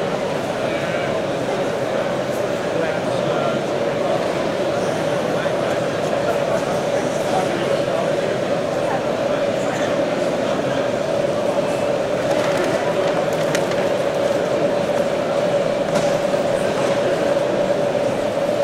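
A model train rolls along its track with a steady electric hum.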